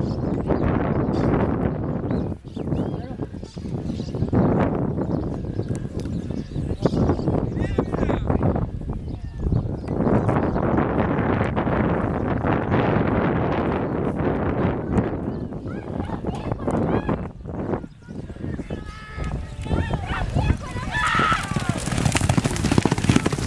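Horses gallop hard over a dirt track, hooves pounding.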